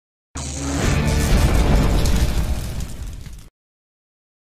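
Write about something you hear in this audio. A fiery burst whooshes and roars.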